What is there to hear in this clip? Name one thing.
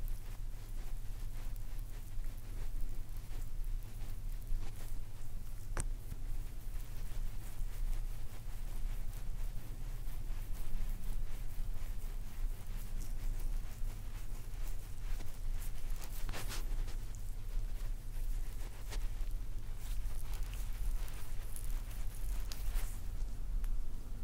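Fingers rub and press on oiled skin close to a microphone.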